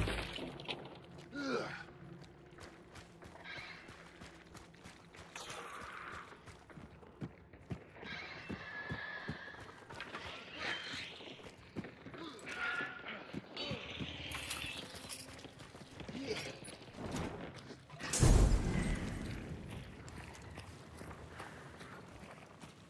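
Footsteps thud on wooden boards and gravel.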